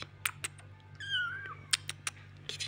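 A kitten mews softly up close.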